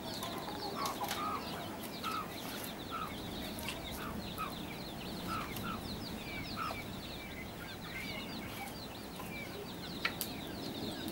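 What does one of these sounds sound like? Firewood sticks knock and clatter as they are pulled from a pile.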